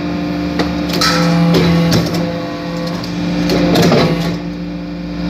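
Metal clanks and rattles as a hydraulic press ram pushes down into aluminium turnings.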